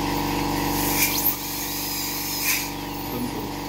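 A dental drill whirs briefly.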